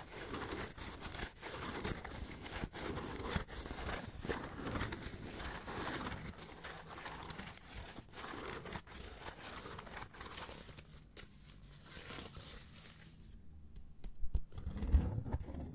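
Fingers rub and scratch on cardboard up close.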